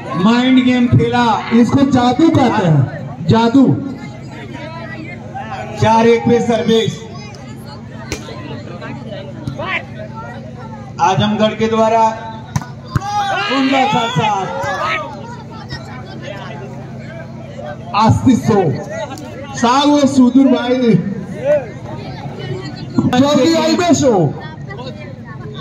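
Men shout and call out loudly nearby, outdoors.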